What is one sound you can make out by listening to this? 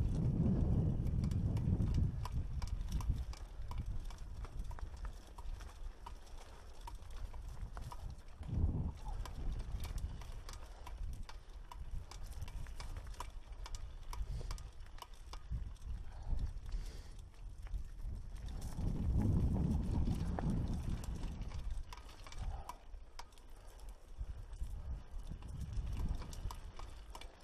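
A mountain bike rattles and clicks over rocks.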